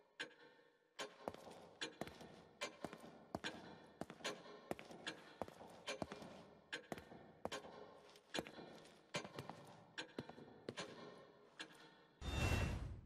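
Footsteps walk at a steady pace on a hard floor indoors.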